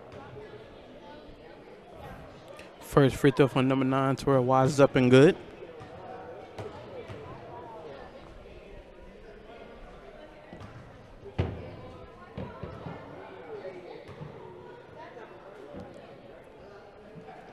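A basketball bounces on a wooden gym floor.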